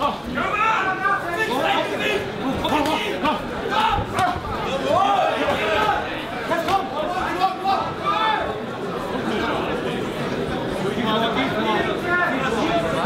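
A crowd of men shouts and cheers loudly nearby.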